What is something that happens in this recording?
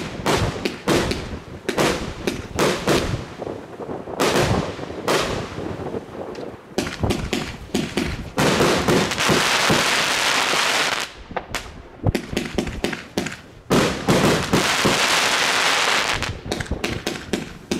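Fireworks burst with loud bangs and booms outdoors.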